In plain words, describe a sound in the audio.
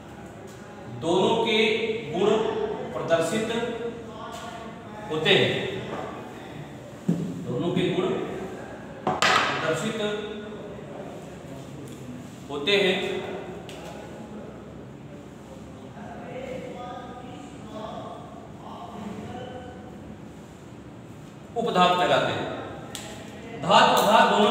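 A man lectures in a steady voice through a clip-on microphone.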